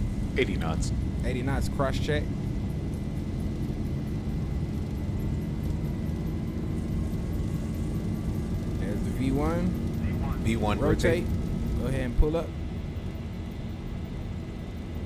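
Jet engines rumble steadily as an airliner rolls down a runway.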